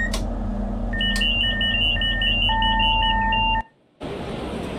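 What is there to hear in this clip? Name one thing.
A warning alarm beeps rapidly in a train cab.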